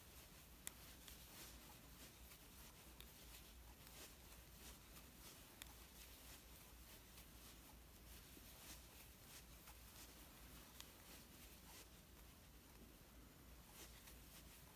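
A crochet hook softly clicks and rustles through yarn.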